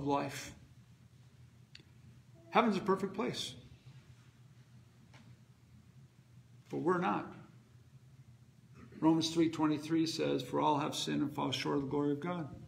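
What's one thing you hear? A middle-aged man speaks with animation, pausing between phrases.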